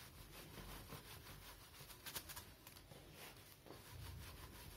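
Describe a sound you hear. A cloth rubs and squeaks across a whiteboard.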